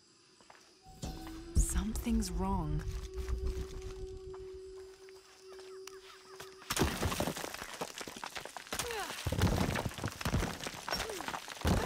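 Footsteps scuff on stone ground.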